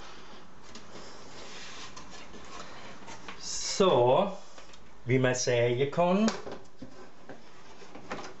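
A wooden frame knocks and scrapes lightly as hands handle it.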